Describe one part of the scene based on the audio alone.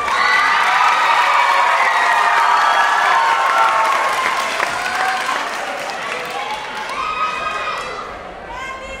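A crowd cheers and screams loudly in a large hall, then fades.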